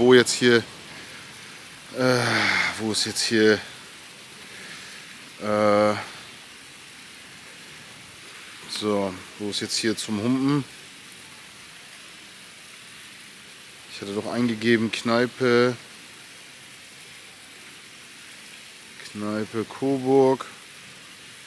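A man talks close to a microphone, in short bursts with pauses.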